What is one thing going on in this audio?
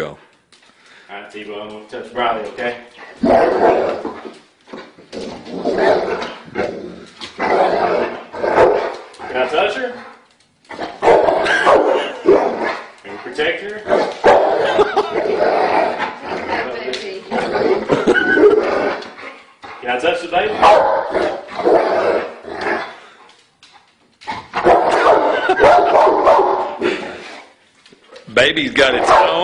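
A man talks to a dog nearby, giving commands.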